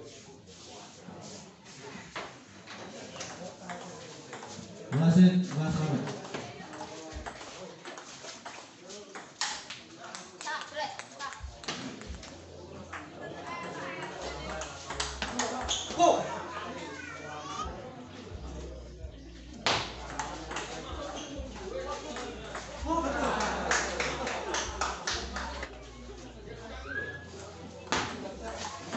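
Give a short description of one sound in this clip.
A ping-pong ball clicks sharply back and forth off paddles and a table.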